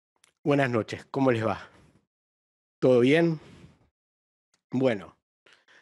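A middle-aged man speaks calmly and closely into a microphone, in short bursts.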